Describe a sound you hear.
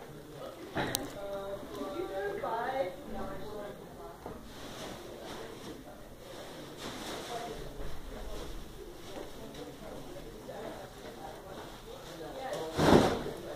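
Plastic flowers rustle as they are handled.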